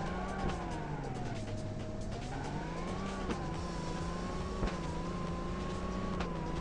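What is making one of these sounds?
A car engine hums and rises in pitch as it speeds up.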